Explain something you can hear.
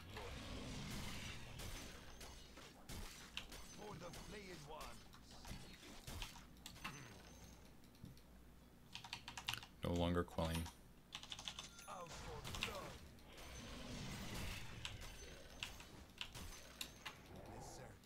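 Fighting sound effects clash and whoosh from a video game.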